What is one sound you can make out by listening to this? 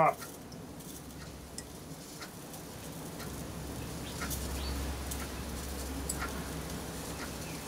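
A metal tool taps and scrapes lightly against electrical contacts.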